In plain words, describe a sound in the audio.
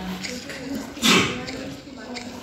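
A crunching bite sound effect plays.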